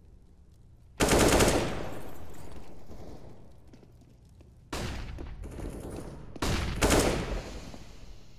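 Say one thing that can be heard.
A rifle fires short, loud bursts of shots.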